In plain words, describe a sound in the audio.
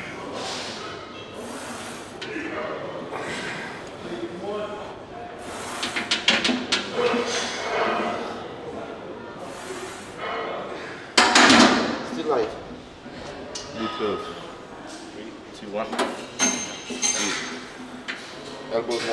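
A man speaks calmly close to a microphone.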